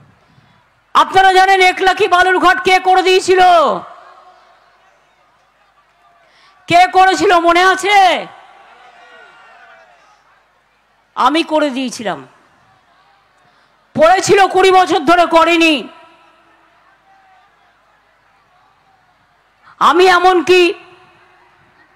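A woman speaks forcefully through a loudspeaker, in bursts with pauses, echoing outdoors.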